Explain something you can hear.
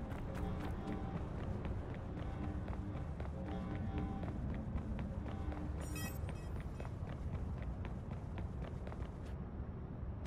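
Footsteps run quickly over gravel.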